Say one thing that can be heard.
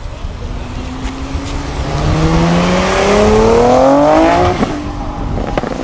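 A sports car engine revs hard and speeds away.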